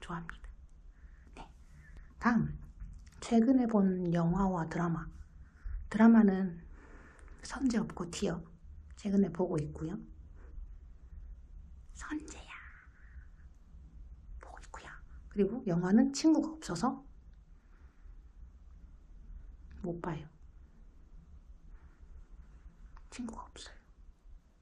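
A young woman talks animatedly close to a microphone, in short bursts with pauses.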